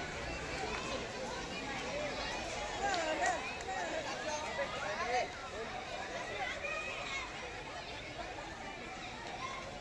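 A crowd of children shouts and cheers outdoors.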